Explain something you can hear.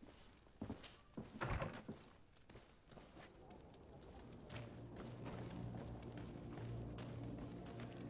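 Footsteps thud on stone pavement.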